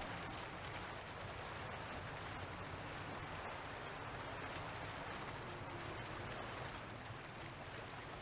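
Water rushes and splashes steadily.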